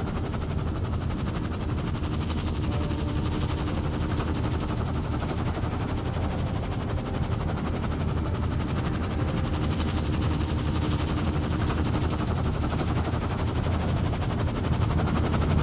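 A helicopter's rotor thuds steadily nearby.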